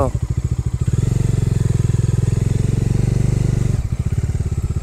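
A motorcycle engine revs up louder, then settles back.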